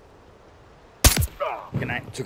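A rifle shot cracks sharply.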